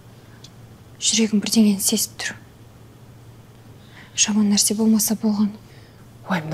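A young woman speaks worriedly, close by.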